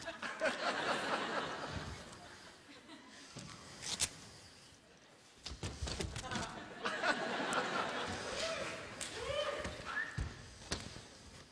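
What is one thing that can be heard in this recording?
A large audience laughs and cheers in a big hall.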